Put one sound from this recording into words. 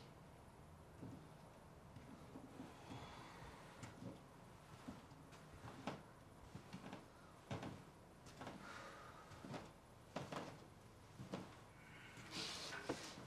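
Footsteps thud across a wooden floor indoors.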